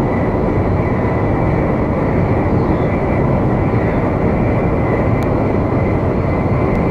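A high-speed train roars steadily along the rails.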